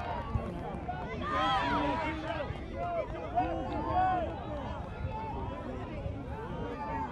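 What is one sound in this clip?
A crowd of adults and children chatters and calls out outdoors.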